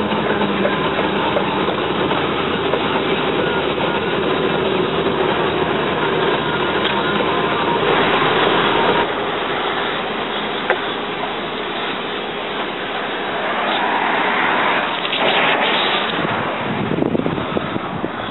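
A heavy truck engine rumbles steadily as the truck drives.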